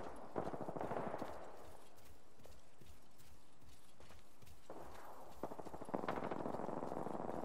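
Quick footsteps run across hard ground.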